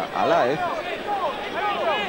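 A football is kicked on grass.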